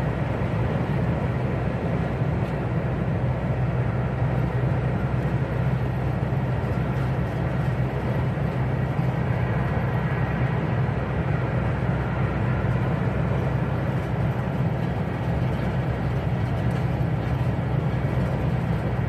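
Tyres roar steadily on the road surface.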